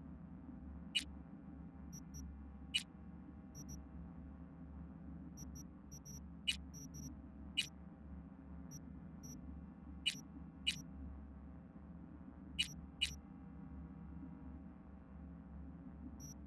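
Short electronic clicks and chimes sound as menu options are picked.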